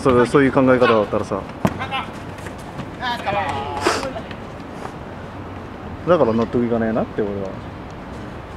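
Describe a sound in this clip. Young men shout to each other outdoors during a game.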